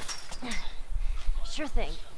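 A chain-link fence rattles as someone climbs over it.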